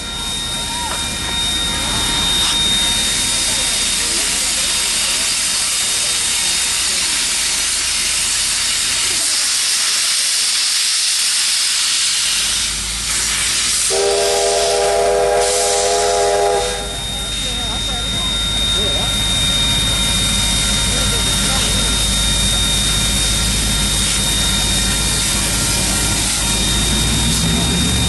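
Steam hisses loudly from a steam locomotive.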